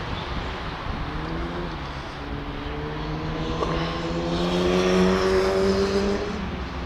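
A vehicle engine drones and rises in pitch.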